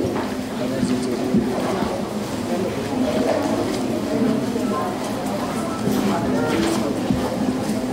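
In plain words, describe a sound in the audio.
A crowd of people chatters and murmurs in an echoing hall.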